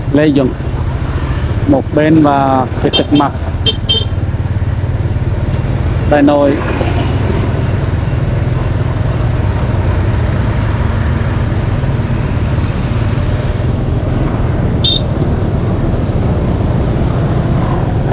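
A motorcycle engine hums steadily while riding in traffic.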